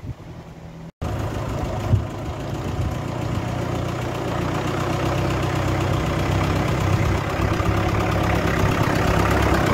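Tractor engines chug loudly as tractors drive closer outdoors.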